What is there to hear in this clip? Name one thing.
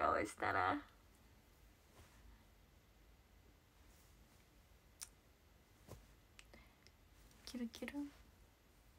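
A young woman speaks close to a microphone, animated and playful.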